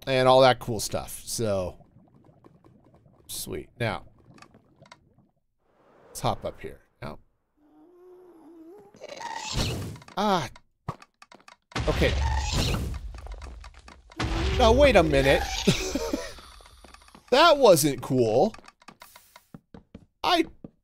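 A middle-aged man talks with animation into a close microphone, in bursts.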